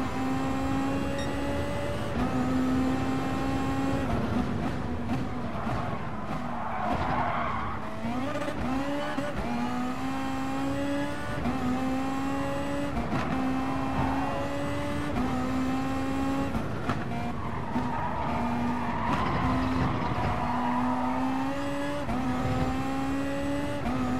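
A racing car engine roars at high revs, rising through each gear and dropping sharply at every shift.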